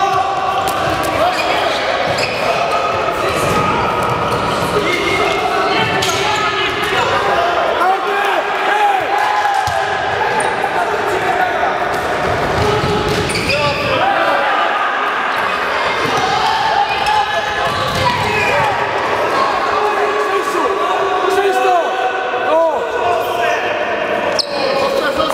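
Young men shout to each other in an echoing hall.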